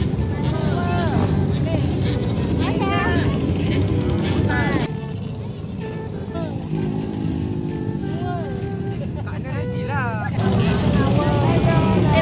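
A crowd of women and children chatter and call out excitedly outdoors.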